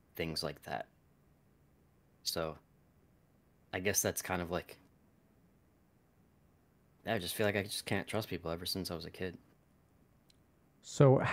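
A man speaks calmly in short bursts over an online call, with pauses between phrases.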